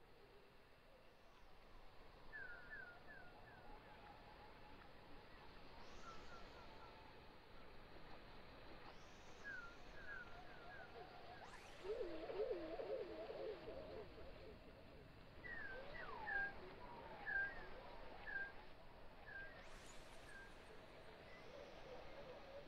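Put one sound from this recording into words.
Electronic music plays softly, with short falling chirps and warbling tones.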